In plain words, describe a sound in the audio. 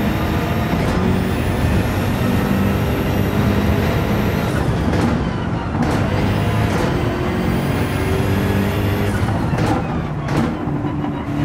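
A car engine briefly cuts out as gears shift quickly.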